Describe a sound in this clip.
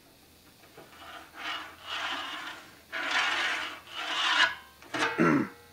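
A pencil scratches along a board.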